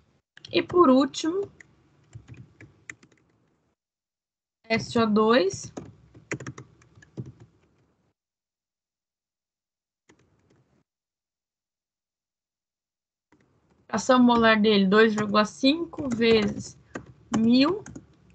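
A woman speaks calmly through a microphone on an online call, with pauses.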